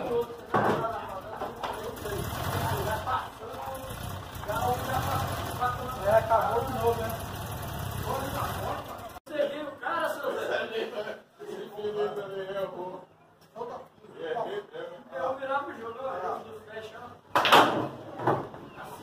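Men talk casually nearby.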